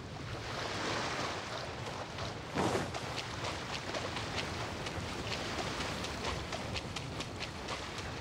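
Quick footsteps splash through shallow water.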